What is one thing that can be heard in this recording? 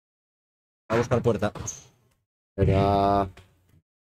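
A ball pops off a racket.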